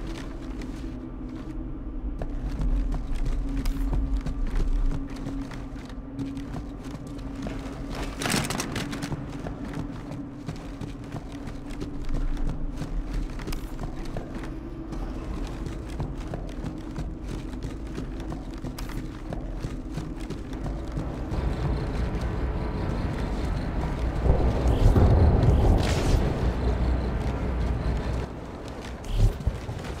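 Footsteps thud on a hard metal floor.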